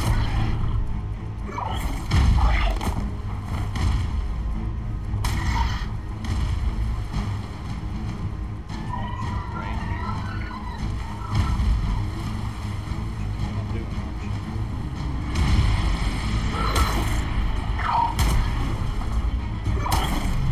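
A large bird's wings beat with heavy, deep whooshes.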